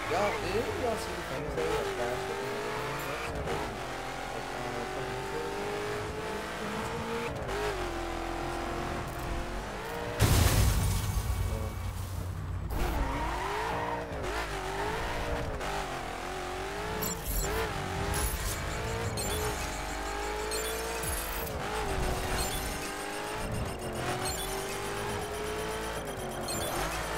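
A sports car engine roars, rising and falling in pitch as it revs and shifts gears.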